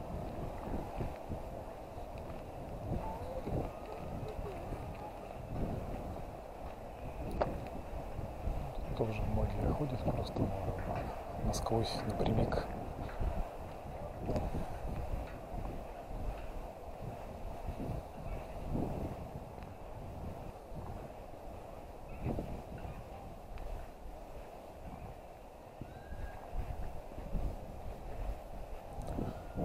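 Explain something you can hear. Tyres roll steadily over asphalt.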